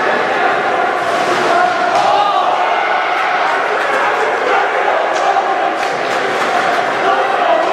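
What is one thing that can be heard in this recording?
A crowd cheers and shouts in a large echoing arena.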